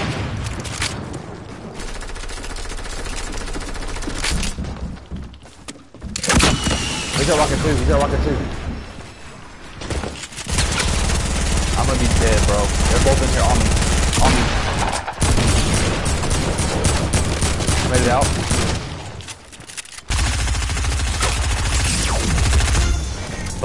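Video game sound effects play throughout.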